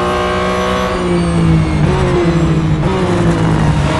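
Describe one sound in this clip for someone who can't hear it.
A racing car engine drops in pitch in steps as the car slows and shifts down.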